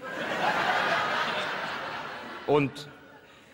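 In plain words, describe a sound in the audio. An audience laughs loudly in a large room.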